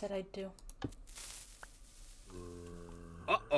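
A fuse hisses.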